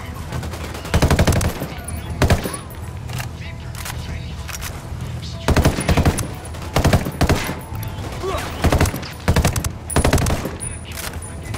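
Rifle shots fire in quick bursts, loud and close.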